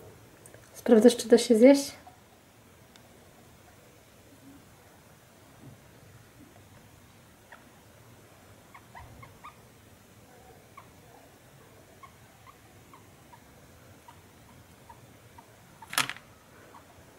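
A guinea pig squeals loudly, then gives soft little squeaks.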